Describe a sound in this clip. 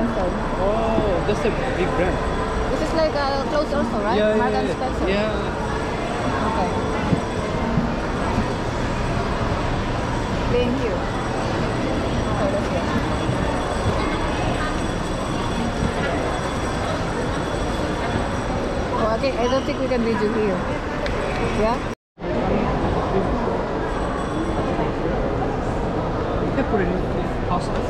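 A crowd murmurs in a large indoor hall.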